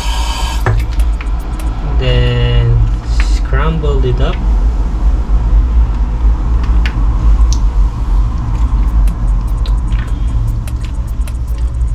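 Hands squish soft food in a bowl.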